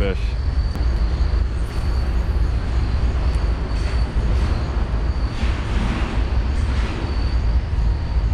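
Wind buffets outdoors with a low, steady rumble.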